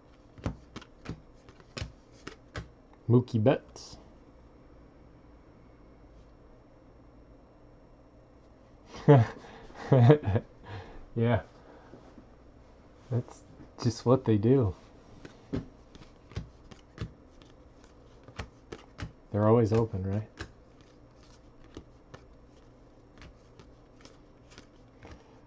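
Trading cards flick and tap as they are sorted by hand.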